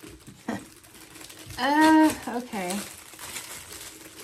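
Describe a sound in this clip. Plastic wrapping crinkles in hands.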